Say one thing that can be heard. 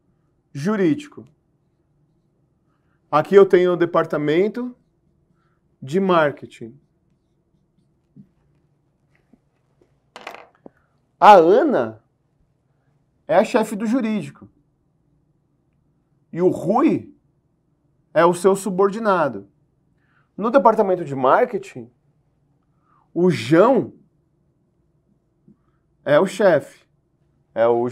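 A middle-aged man speaks clearly in short phrases, close to a microphone.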